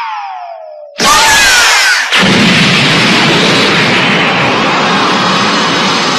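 An energy blast roars loudly.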